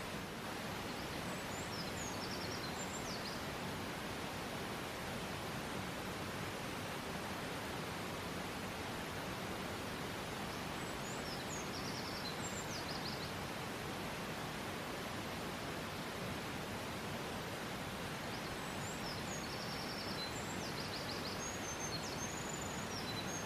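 A small songbird sings in loud, rapid trilling bursts.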